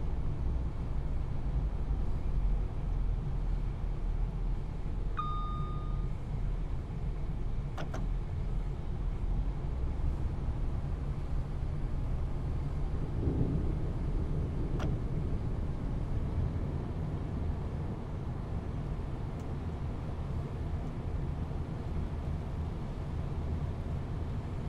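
A train's engine rumbles low and steady as it runs along the track.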